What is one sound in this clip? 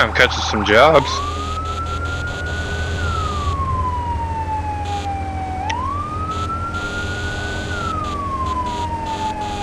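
A fire engine siren wails, rising and falling slowly.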